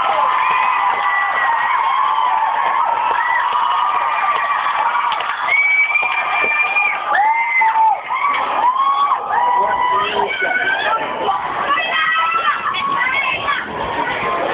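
Members of a crowd whistle shrilly over and over.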